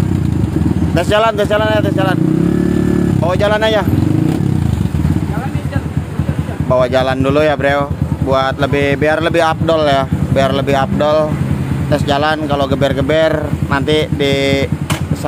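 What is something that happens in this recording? A motorcycle engine revs up and down in short bursts.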